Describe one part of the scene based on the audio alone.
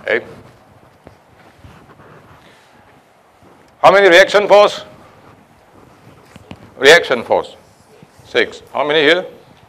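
A man speaks in bursts through a microphone in a large echoing hall.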